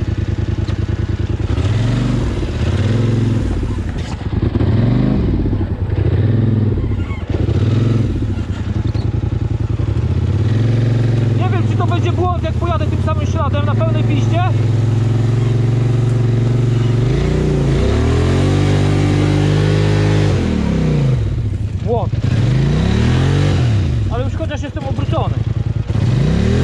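An all-terrain vehicle's engine revs up and down loudly.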